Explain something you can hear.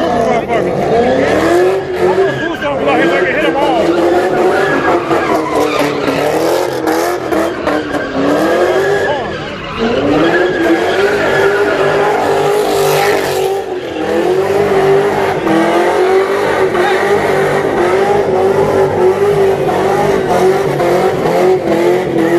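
Tyres screech as a car spins on the road.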